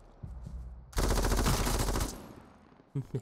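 A machine gun fires a rapid burst.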